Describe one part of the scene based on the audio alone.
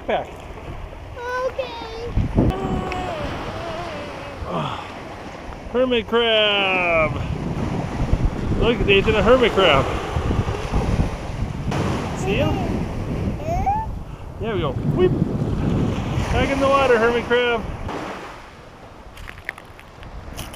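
Waves wash softly onto a beach.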